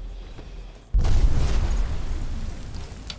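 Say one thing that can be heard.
A huge creature crashes down with a heavy thud.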